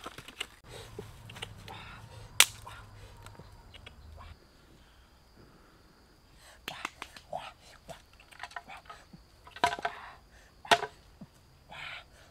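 Wood knocks and clatters as sticks are handled.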